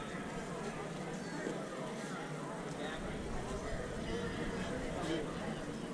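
A crowd murmurs and talks outdoors at a distance.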